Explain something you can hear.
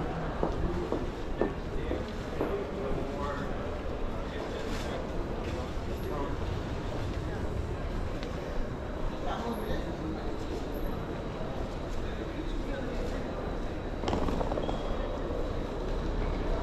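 Footsteps of many people echo on a hard floor in a large hall.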